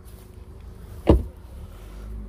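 A car door slams shut with a thud.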